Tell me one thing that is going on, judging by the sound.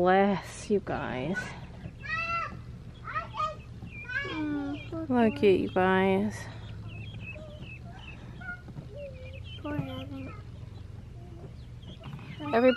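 A young girl speaks calmly close by.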